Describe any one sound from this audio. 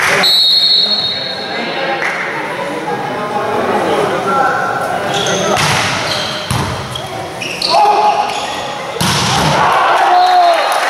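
Young men shout and call out to each other.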